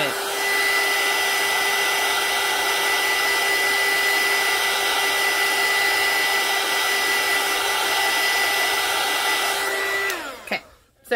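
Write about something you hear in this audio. A heat gun blows with a loud, steady whirring hiss, then switches off.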